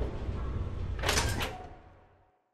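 A device clicks and clatters twice in quick succession.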